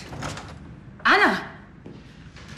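A young woman screams in fright.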